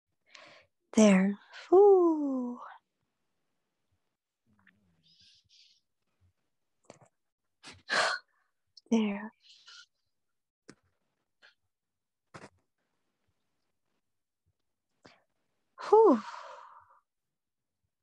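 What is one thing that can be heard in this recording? A young woman speaks in short, sweeping bursts close to a microphone, with long pauses between.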